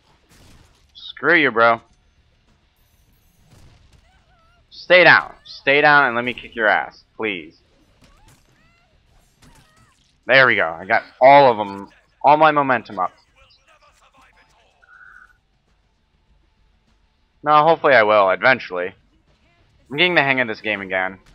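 A young man speaks close to a microphone in short bursts.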